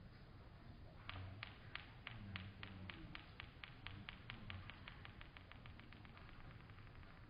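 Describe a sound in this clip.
A small ball rolls and clatters along wooden blocks.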